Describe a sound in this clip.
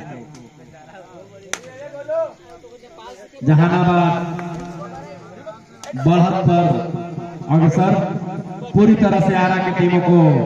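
A crowd of spectators shouts and calls out.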